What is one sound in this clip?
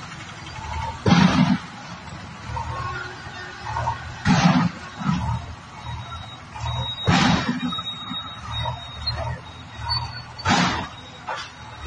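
A loader's bucket scrapes and crashes against masonry.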